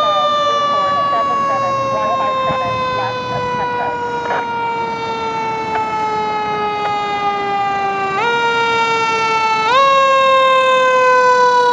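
A fire truck's horn blares in one long, steady blast, its pitch slowly sinking and then jumping up twice.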